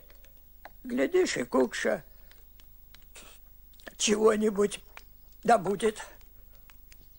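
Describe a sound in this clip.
An elderly man speaks calmly and slowly nearby.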